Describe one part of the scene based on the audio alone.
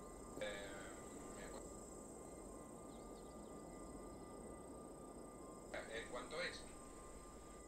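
A man speaks briefly in short bursts close to a microphone.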